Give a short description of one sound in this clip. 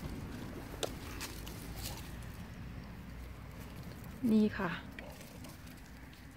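A dog rustles through dry leaves.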